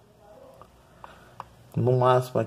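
Buttons on a handheld game console click as they are pressed.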